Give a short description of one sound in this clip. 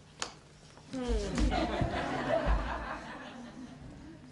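A group of young people laughs and calls out on a stage.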